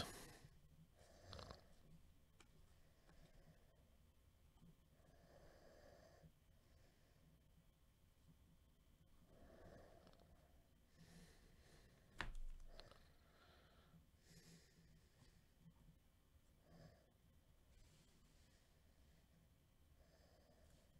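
Trading cards slide and rustle against each other.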